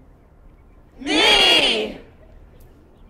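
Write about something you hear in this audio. A large crowd of young people shouts together outdoors.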